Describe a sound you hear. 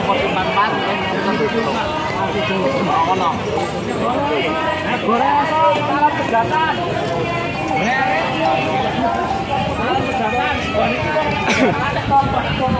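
Several men talk at once close by, outdoors.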